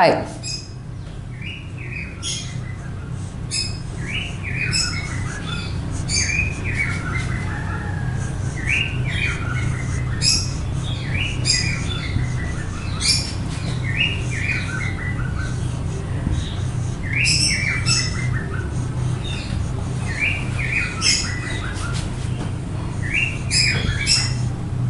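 A marker squeaks in short strokes on a whiteboard.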